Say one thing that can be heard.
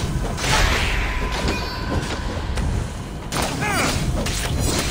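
Magical blasts burst and crackle loudly.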